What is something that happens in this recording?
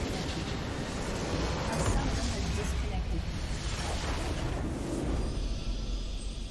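A loud explosion booms as a large crystal shatters.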